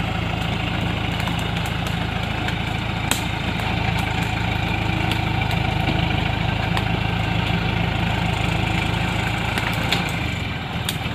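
Plants and branches snap and crackle under the truck's tyres.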